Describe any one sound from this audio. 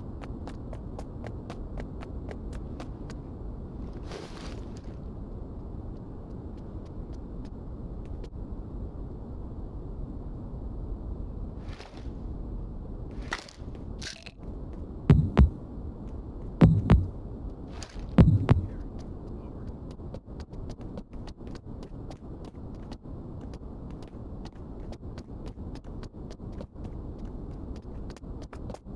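Boots tread quickly on hard concrete.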